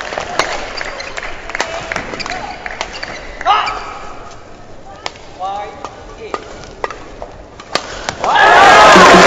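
Badminton rackets strike a shuttlecock.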